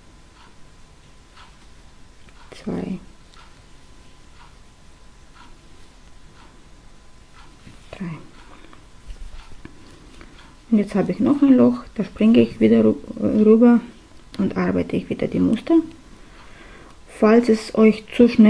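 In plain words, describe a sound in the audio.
Yarn rustles softly as it is pulled.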